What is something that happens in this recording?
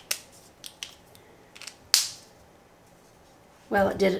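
A plastic marker cap clicks on and off.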